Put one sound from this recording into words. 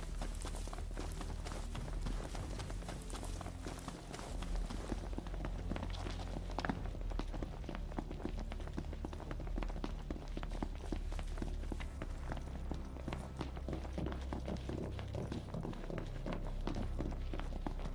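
Footsteps run quickly on a hard road.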